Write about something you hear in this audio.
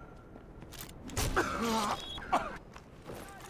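Blows thud and bodies scuffle in a brief fight.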